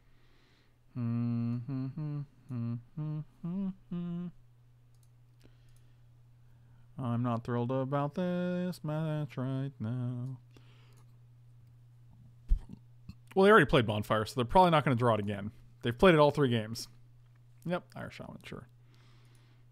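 A middle-aged man talks calmly and with animation into a close microphone.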